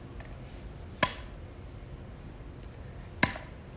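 A small hammer taps sharply on something.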